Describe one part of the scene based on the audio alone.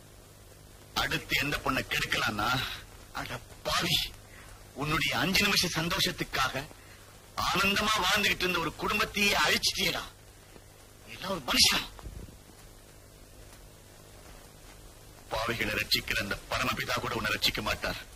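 A man speaks forcefully nearby.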